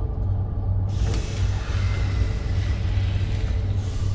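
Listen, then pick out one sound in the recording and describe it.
A heavy metal mechanism grinds and whirs as it turns.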